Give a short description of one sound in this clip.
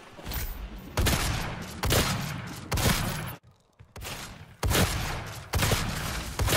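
Heavy gunfire blasts in loud, rapid bursts.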